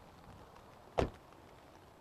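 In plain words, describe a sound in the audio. A car door handle clicks.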